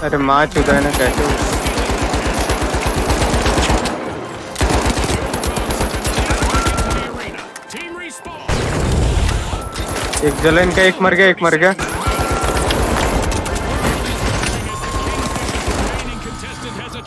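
A heavy machine gun fires rapid bursts of shots.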